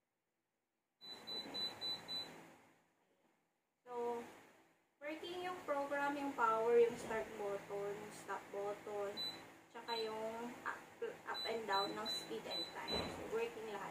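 Beeps sound from a device as buttons are pressed.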